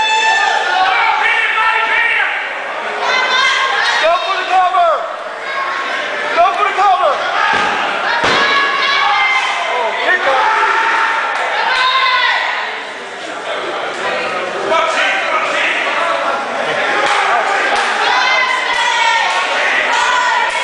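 A crowd shouts and cheers in an echoing hall.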